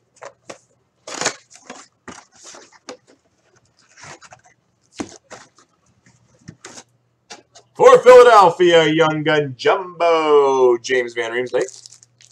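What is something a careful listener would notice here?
Foil card packs crinkle and rustle.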